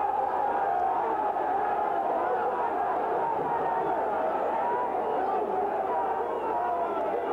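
A crowd cheers and shouts loudly in a large stadium.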